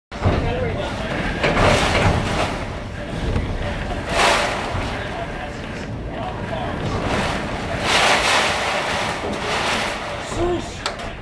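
Strong wind roars in loud, surging gusts outdoors.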